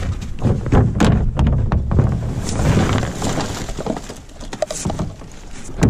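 Rubbish tumbles and clatters out of a bin.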